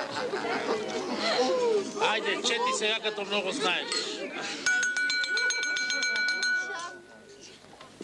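A crowd of men talks and laughs at once.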